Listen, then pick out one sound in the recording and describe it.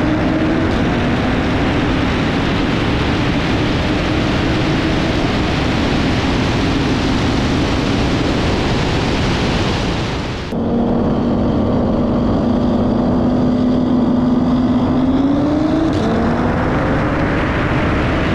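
A car engine drones and rises in pitch as it accelerates.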